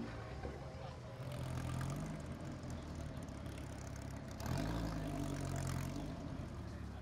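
A car engine roars, rising and falling.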